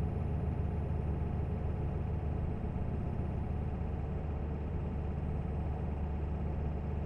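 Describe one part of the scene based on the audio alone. Tyres roll on asphalt.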